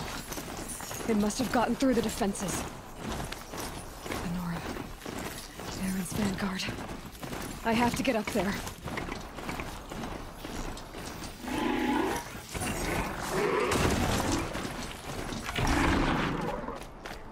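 Metal hooves clatter on stone at a fast trot.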